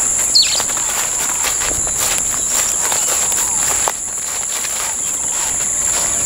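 Footsteps rustle through dry leaves and undergrowth.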